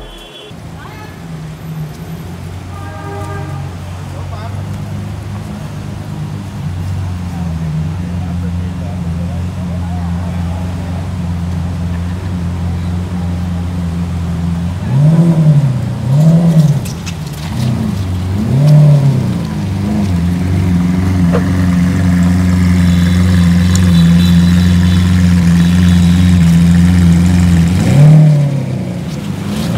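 A sports car engine idles with a deep steady rumble.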